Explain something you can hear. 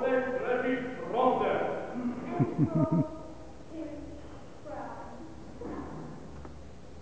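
A young woman sings solo in a large hall.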